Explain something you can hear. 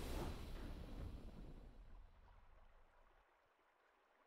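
A triumphant game fanfare rings out and fades away.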